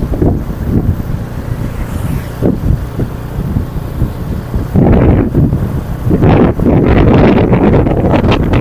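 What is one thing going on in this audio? Wind rumbles and buffets loudly while riding along an open road.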